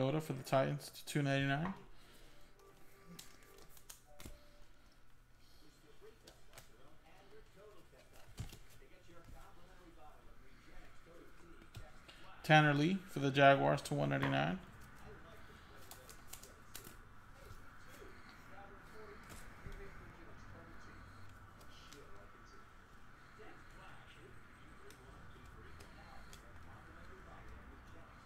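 Trading cards rustle and flick as a stack is shuffled through by hand.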